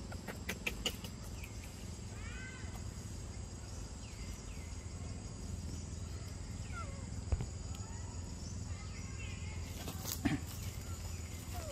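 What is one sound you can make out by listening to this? A macaque chews and smacks on ripe mango.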